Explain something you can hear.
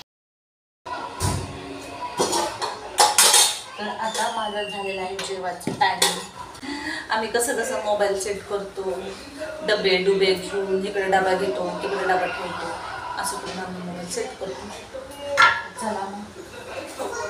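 A young woman talks calmly, close by.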